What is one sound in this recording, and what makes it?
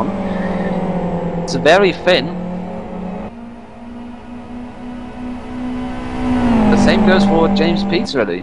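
Racing car engines drone loudly and steadily as cars speed past.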